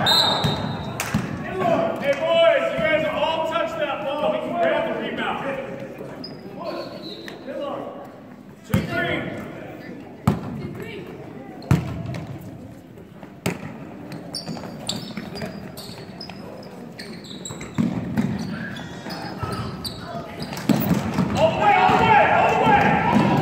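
A crowd of spectators chatters and cheers.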